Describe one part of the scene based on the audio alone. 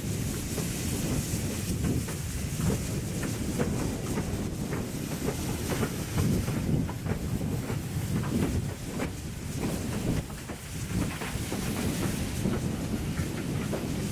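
Steel wheels clank and squeal on the rails.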